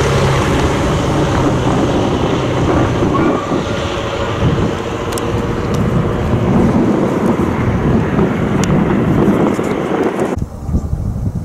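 A steam locomotive chugs in the distance.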